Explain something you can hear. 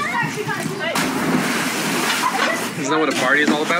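Water splashes loudly as a boy jumps into a pool.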